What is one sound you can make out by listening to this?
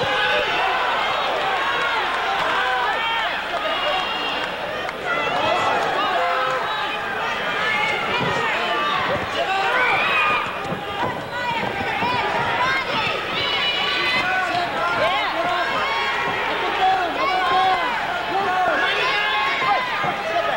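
Boxing gloves thump against a body in quick blows.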